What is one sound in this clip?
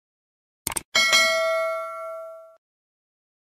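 A small notification bell chimes and rings out.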